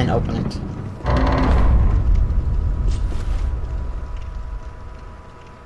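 Heavy doors grind open with a deep rumble.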